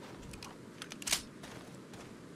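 A gunshot cracks once.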